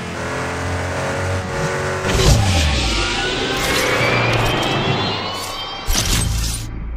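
A racing car engine roars at high speed.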